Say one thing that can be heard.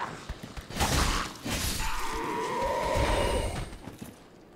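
Metal weapons clash and strike in a short, loud fight.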